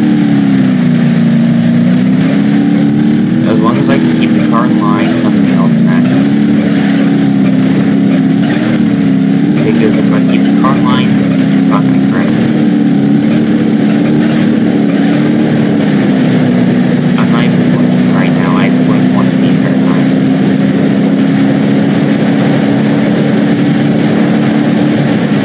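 A car engine roars steadily, its pitch rising and falling as it speeds up.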